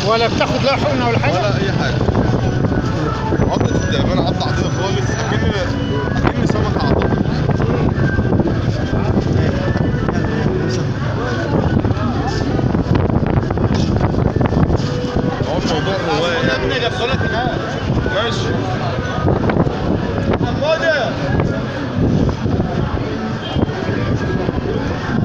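A crowd of men talk over one another nearby, outdoors.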